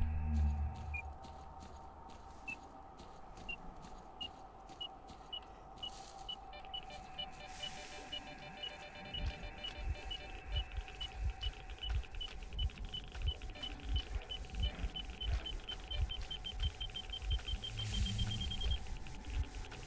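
A handheld detector beeps, the beeps coming faster and faster, then stops.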